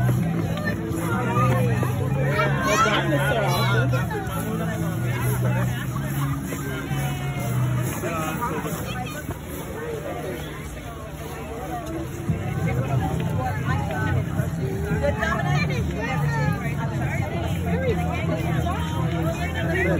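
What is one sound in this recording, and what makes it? A crowd of children and adults chatters and calls out nearby outdoors.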